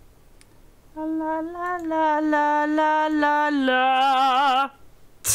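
A young woman sings a long, wavering note close to a microphone.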